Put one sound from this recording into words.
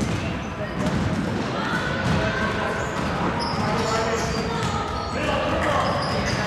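Sneakers squeak sharply on the floor in a large echoing hall.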